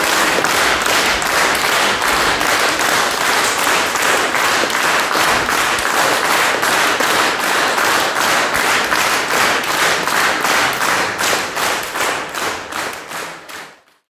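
An audience applauds loudly in a large hall, fading away at the end.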